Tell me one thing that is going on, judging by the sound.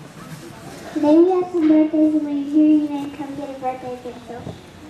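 A young girl speaks through a microphone, reading out.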